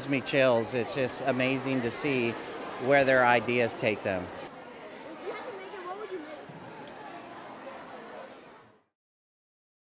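Children chatter in the background of a large echoing hall.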